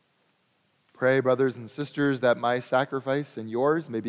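A man speaks through a microphone, echoing in a large hall.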